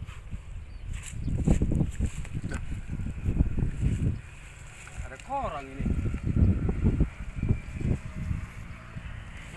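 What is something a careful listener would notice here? Tall grass rustles and swishes as a man pushes through it.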